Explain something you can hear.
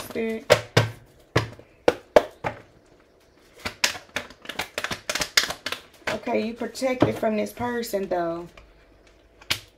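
Cards slap and flick against a tabletop.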